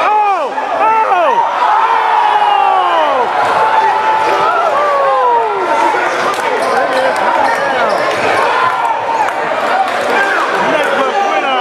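A crowd of spectators chatters and calls out in an echoing gym.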